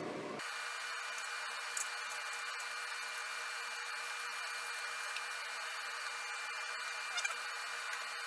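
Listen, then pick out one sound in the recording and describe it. A spoon scrapes and clinks in a small bowl.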